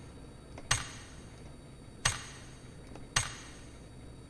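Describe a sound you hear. Menu selection clicks sound sharply a few times.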